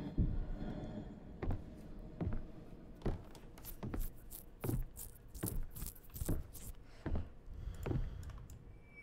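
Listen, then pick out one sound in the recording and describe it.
Footsteps tread steadily along a hard floor.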